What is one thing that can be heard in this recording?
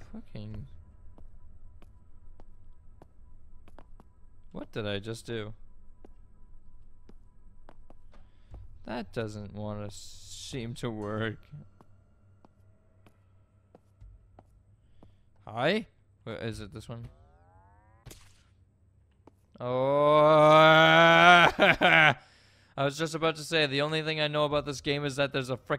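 A young man talks into a close microphone with animation, in bursts.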